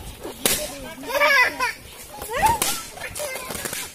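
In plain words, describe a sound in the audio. A small child babbles and squeals.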